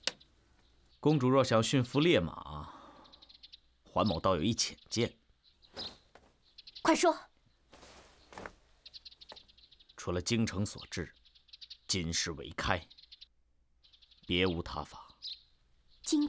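A middle-aged man speaks calmly and slyly, close by.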